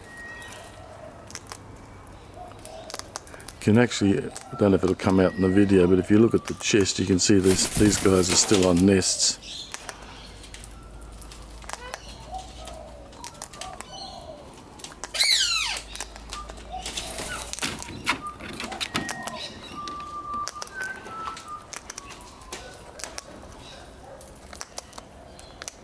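A sulphur-crested cockatoo cracks and crunches seeds.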